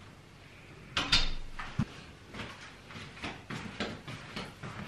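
Footsteps cross a hard floor.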